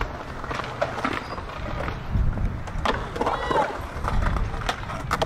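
Skateboard wheels roll and rumble on concrete.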